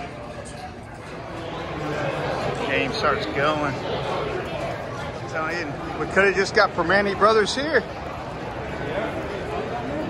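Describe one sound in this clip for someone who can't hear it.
A crowd of people chatters in a large echoing concourse.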